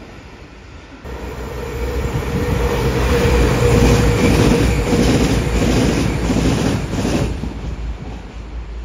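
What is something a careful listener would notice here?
A diesel multiple-unit train drones past with its engines running.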